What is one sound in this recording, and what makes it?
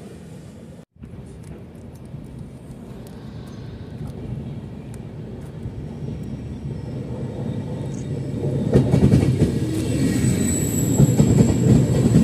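A second train approaches and rolls past close by, growing steadily louder.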